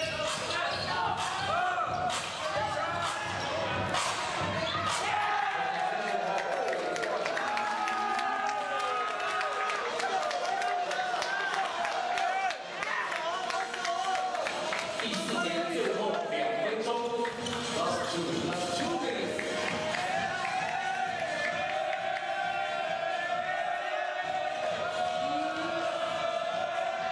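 A crowd of young men shouts and cheers with excitement.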